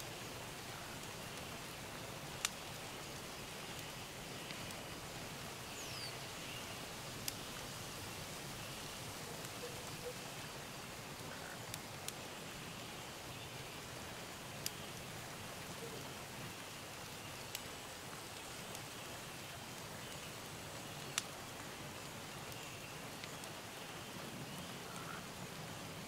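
Rain falls steadily in a forest.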